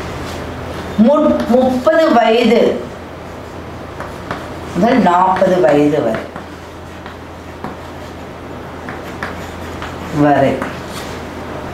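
A woman speaks calmly and clearly, close by, in short bursts.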